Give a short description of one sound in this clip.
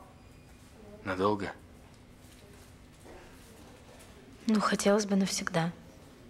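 A young woman speaks calmly in a quiet room.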